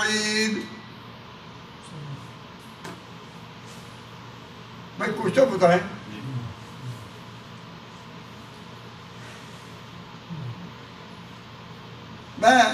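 An elderly man speaks with animation into a microphone, pausing often.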